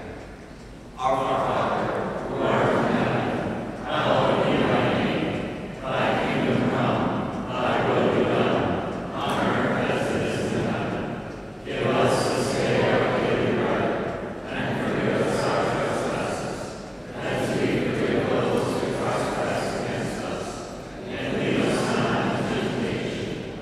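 A woman sings through a microphone, echoing in a large hall.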